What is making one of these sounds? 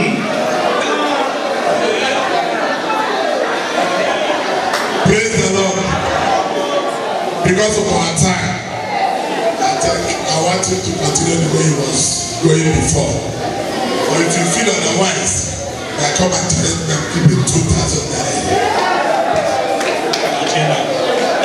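A man speaks with animation into a microphone over loudspeakers.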